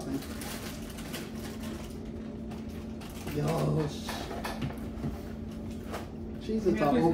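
A snack bag crinkles.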